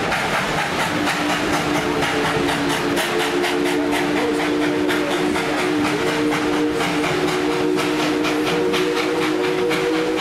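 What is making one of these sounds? A steam whistle blows long and steady.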